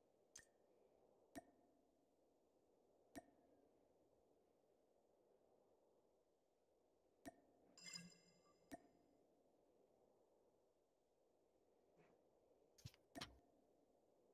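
Sharp game menu clicks sound now and then.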